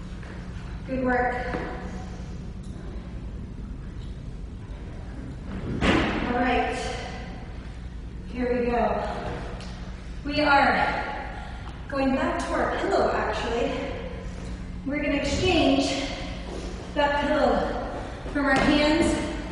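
A young woman talks calmly and clearly, close by, with a slight echo in a bare room.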